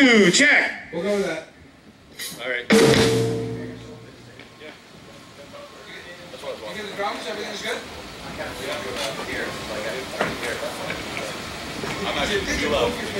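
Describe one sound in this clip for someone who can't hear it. A man talks into a microphone through loudspeakers.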